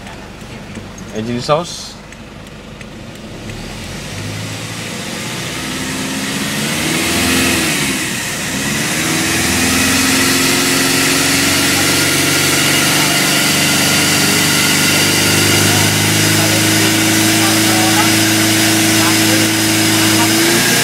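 A car engine revs and roars loudly as the car accelerates.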